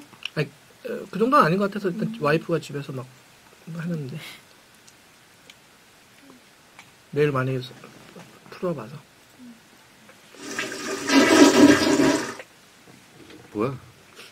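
Two men talk casually into close microphones.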